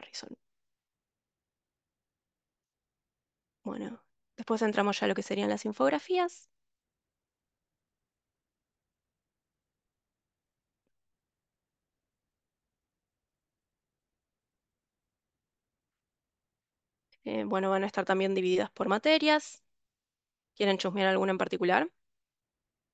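A young woman speaks calmly through an online call, in short bursts with pauses.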